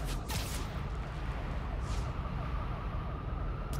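Air rushes past in loud whooshes during a fast swing.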